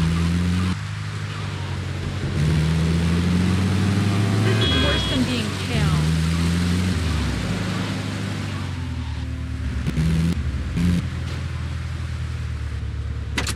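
An engine hums steadily and rises and falls in pitch as a vehicle drives along.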